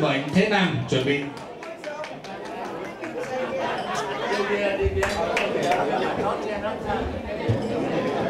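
A man speaks into a microphone over a loudspeaker in an echoing room.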